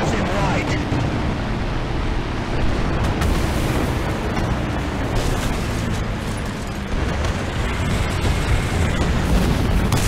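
A tank engine idles with a low, steady rumble.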